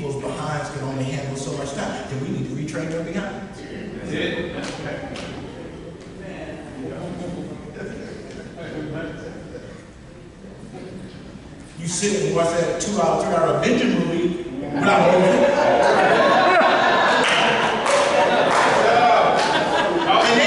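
A man speaks with animation into a microphone, heard through a loudspeaker in a large room.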